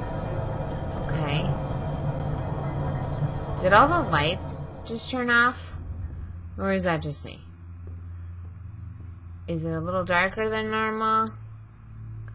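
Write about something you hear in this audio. A young woman speaks into a microphone with animation.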